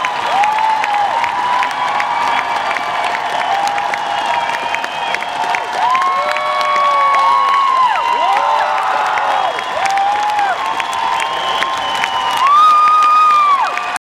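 A large crowd cheers loudly in a big hall.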